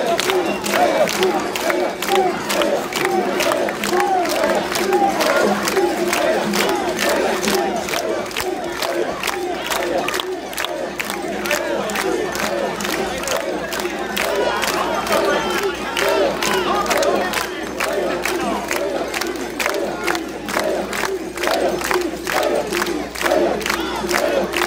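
A dense crowd murmurs and cheers all around outdoors.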